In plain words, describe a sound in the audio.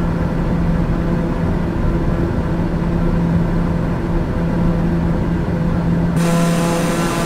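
A propeller engine drones steadily, muffled as if heard from inside a cabin.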